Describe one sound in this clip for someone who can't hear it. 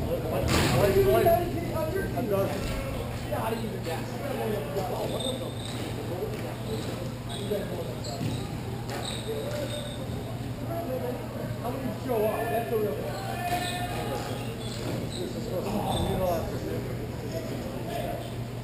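Skate wheels roll and scrape across a hard floor.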